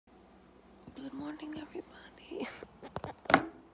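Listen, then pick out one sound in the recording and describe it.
A young woman speaks quietly and close by.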